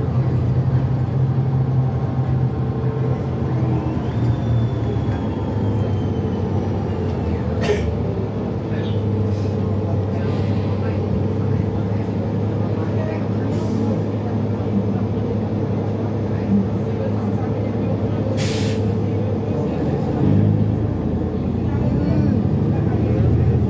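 A bus engine rumbles steadily from inside the vehicle.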